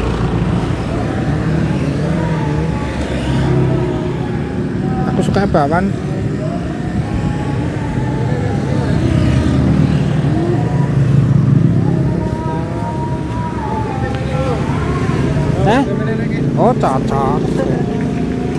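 Men and women chatter in a busy crowd nearby.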